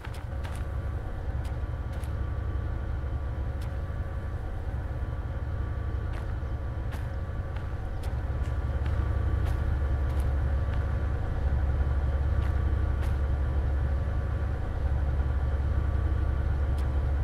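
Diesel locomotive engines idle with a deep, steady rumble that grows louder.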